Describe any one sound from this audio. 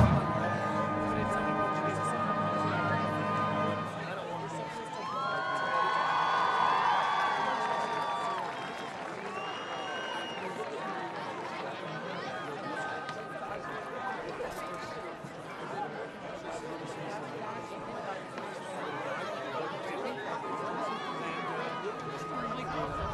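A crowd murmurs in the stands.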